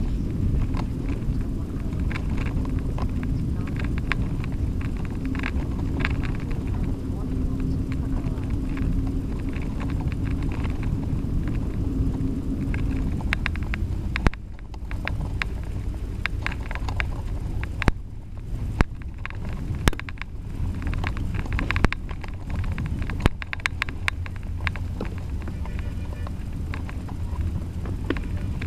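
A bicycle's frame rattles and clicks over bumps.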